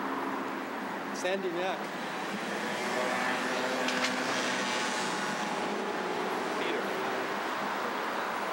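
A man speaks calmly in the crowd.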